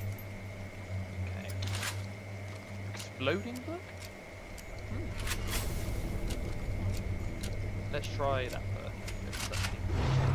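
A shotgun is loaded with shells, with sharp metallic clicks.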